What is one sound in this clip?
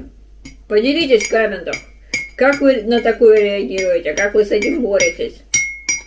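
A spoon clinks against a mug.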